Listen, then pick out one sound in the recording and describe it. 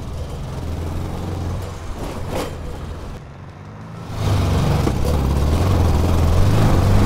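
A dune buggy engine roars, fading into the distance and then growing louder as it comes back.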